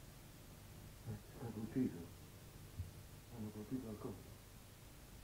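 A middle-aged man speaks in a low, tense voice close by.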